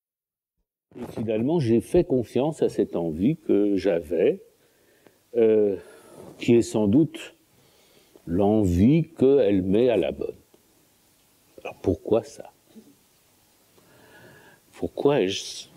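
An elderly man speaks calmly and thoughtfully into a nearby microphone, with pauses.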